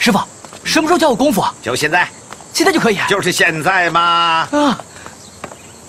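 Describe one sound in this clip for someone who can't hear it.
A young man speaks eagerly, close by.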